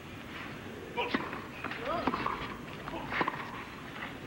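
A tennis ball is struck hard with a racket, with sharp pops going back and forth.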